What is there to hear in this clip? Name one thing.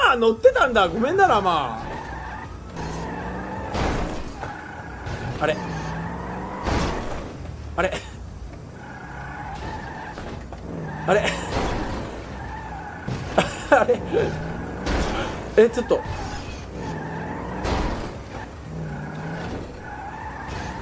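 A car engine revs again and again.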